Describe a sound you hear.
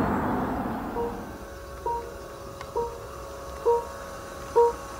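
A car's warning beeps sound at a steady pace as it slowly backs up.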